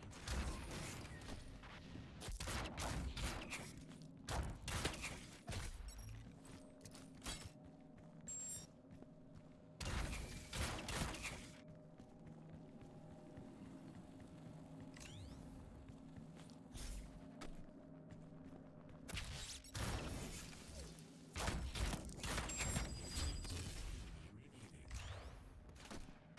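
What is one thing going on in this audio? Guns fire in loud, rapid bursts.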